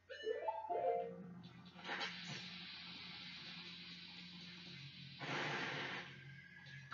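Video game music plays through a television speaker.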